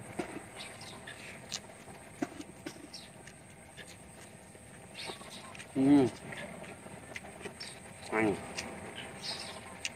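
A young man chews and slurps food noisily.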